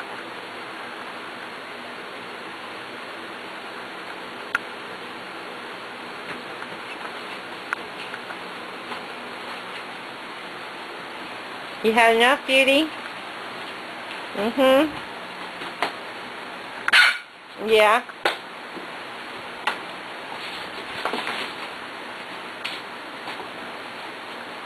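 Puppies whimper and squeak softly.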